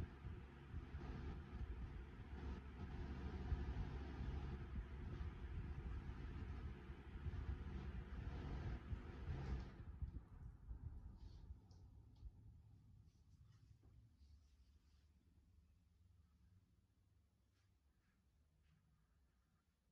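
Several electric fans whir loudly, then wind down and slowly fade.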